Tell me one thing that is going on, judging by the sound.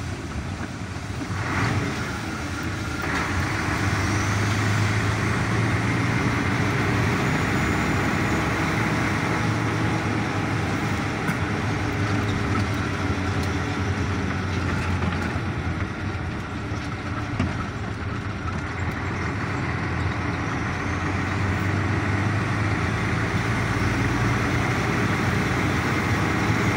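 A vehicle's engine hums steadily as it drives along.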